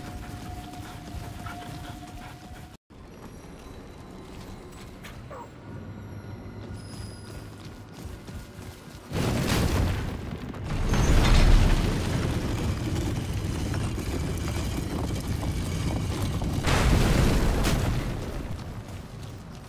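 Heavy footsteps tread on stone.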